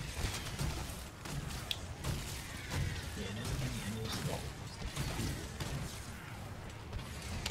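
A heavy blade slashes and clangs against a hard hide.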